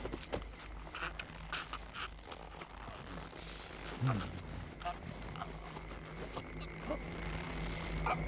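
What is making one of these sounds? A man groans and strains in pain.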